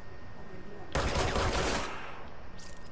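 A pistol fires a burst of shots.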